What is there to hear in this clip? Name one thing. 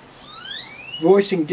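An elderly man speaks close by.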